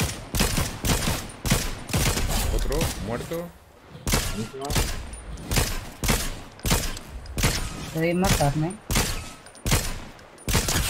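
Gunshots fire in quick bursts, close by.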